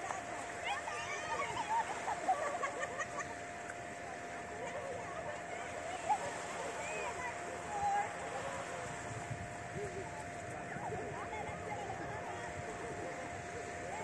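Children and adults shout and call out at a distance outdoors.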